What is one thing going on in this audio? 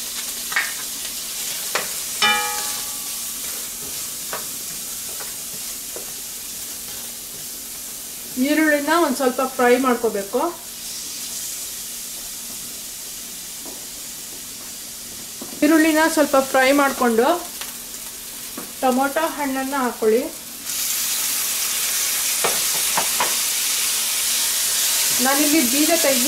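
A spatula scrapes and taps against a steel pan.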